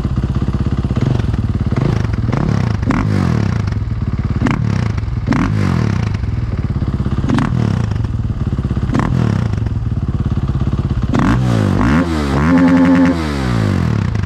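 A motorcycle engine revs up sharply in short bursts.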